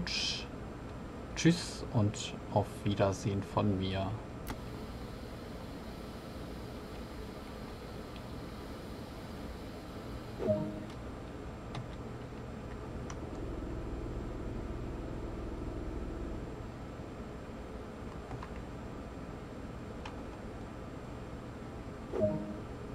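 A train engine hums steadily at idle.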